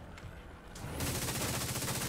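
A gun fires in bursts.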